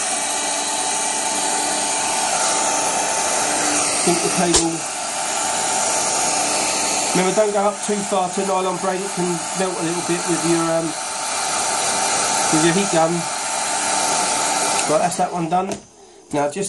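A heat gun blows hot air.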